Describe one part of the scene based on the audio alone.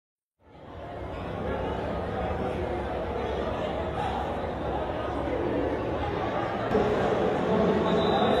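A large crowd chatters loudly in a big echoing hall.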